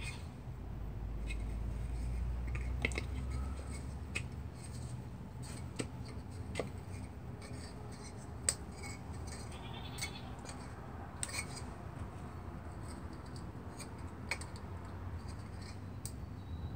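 Plastic fan blades click and tap as they are handled.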